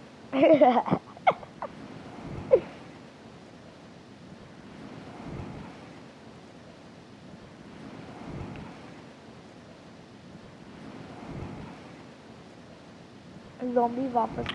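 Wind rushes and whooshes in slow swells.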